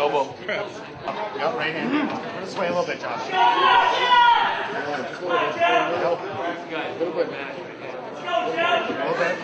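A man gives loud, firm instructions close by in an echoing room.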